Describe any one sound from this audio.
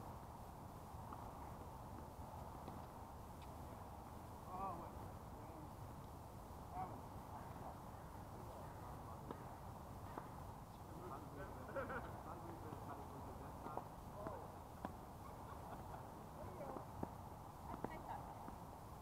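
Tennis balls are struck with rackets, with sharp pops now and then.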